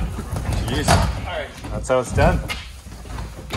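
Several men shout and cheer excitedly nearby.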